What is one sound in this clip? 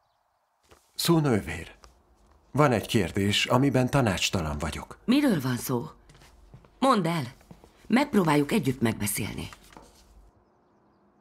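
A middle-aged woman speaks firmly, close by.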